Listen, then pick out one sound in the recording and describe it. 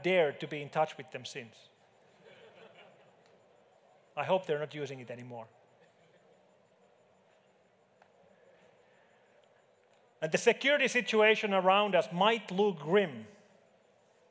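A man speaks calmly through a headset microphone, pausing between phrases.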